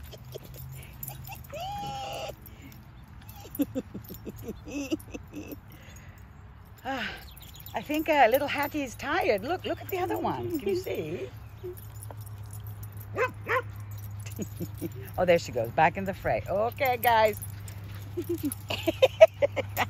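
Dogs run and scuffle on grass.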